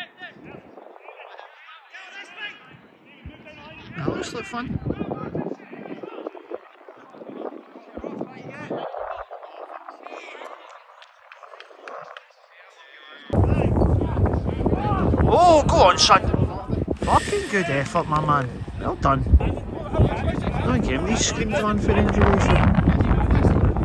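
Men shout and call out across an open field outdoors.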